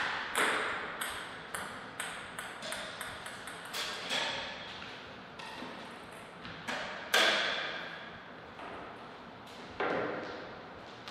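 A table tennis ball bounces with light clicks in an echoing hall.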